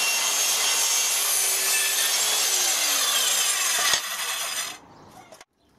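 A power saw whines loudly as it cuts wood.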